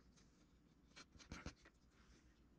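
A small piece of clay is set down on a wooden board.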